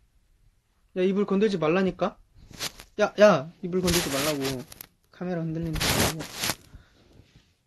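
A young man speaks close to a phone microphone, in short bursts.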